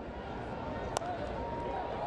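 A bat cracks sharply against a ball.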